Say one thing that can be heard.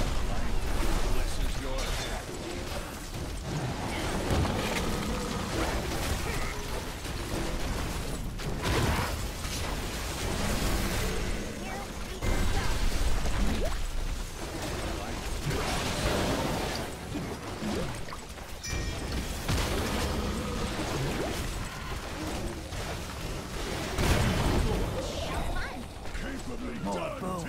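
Game spells and weapons clash and burst in a busy battle.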